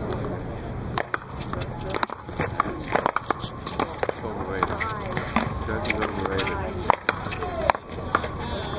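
A ball smacks sharply off paddles and a wall outdoors.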